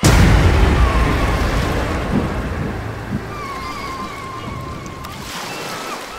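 Waves wash gently onto a sandy shore.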